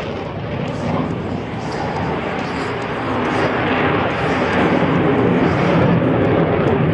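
A jet engine roars overhead, growing louder as the aircraft approaches.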